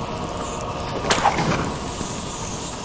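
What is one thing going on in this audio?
A pile of straw bursts into flame with a sudden whoosh.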